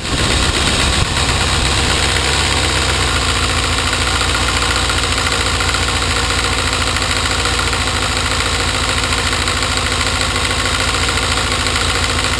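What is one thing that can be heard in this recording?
A motorcycle engine idles steadily and low.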